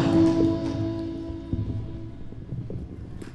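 An electric guitar chord rings out and slowly fades.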